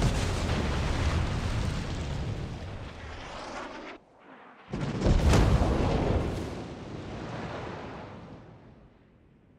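Heavy naval guns boom and rumble loudly.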